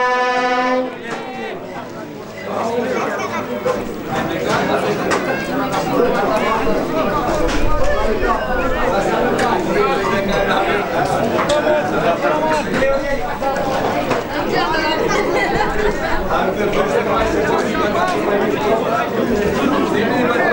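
Several men shout and call to one another outdoors.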